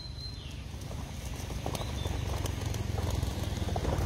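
A dove's wings flap as it takes off.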